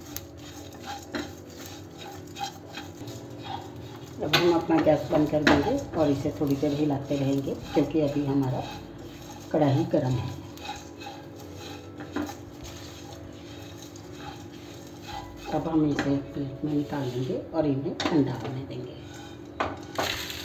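A spatula scrapes and stirs dry seeds in a pan.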